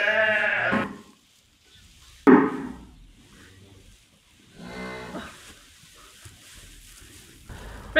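Straw rustles as a woman climbs over bales.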